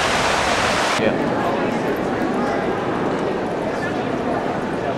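A crowd of people murmurs and talks in a large echoing hall.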